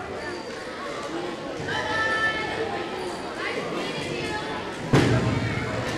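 A woman speaks into a microphone over a loudspeaker in a large echoing room.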